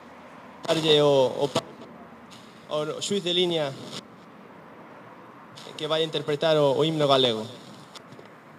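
A young man speaks into a microphone, heard through a loudspeaker, in short phrases with pauses.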